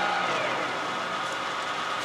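A metal lathe spins down to a stop.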